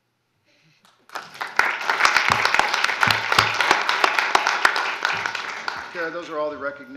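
An audience applauds in a large room.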